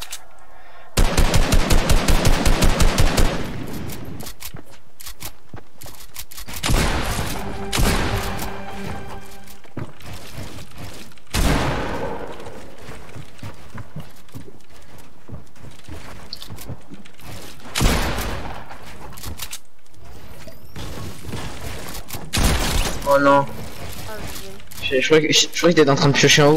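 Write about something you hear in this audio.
Building pieces snap into place in a video game with quick, repeated clicks.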